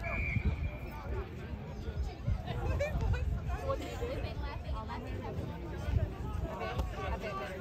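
Spectators chatter and call out across an open field.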